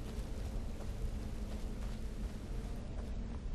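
A flame crackles and hisses steadily.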